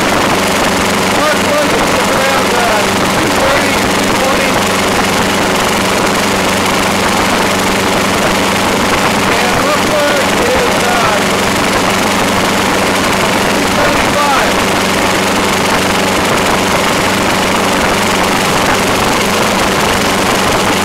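A small petrol engine idles steadily close by.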